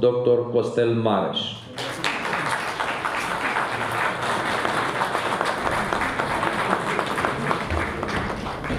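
A man speaks into a microphone through loudspeakers.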